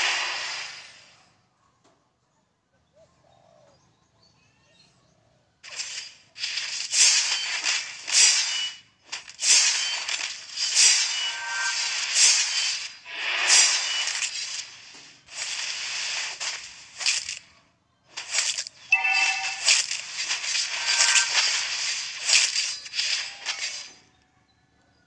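Game sound effects of spells and hits burst and crackle in quick succession.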